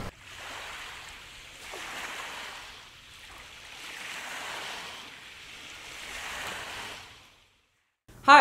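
Small waves wash and break gently on a pebble shore.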